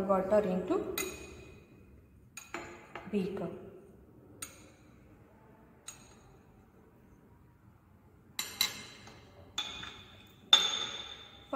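Glassware clinks against a hard surface.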